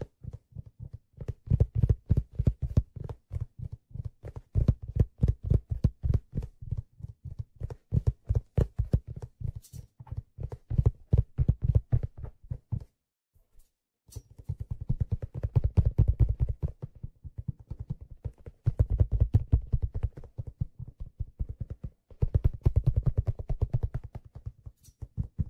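A steel hand drum is tapped quickly by hand, giving rapid, mellow, low ringing notes.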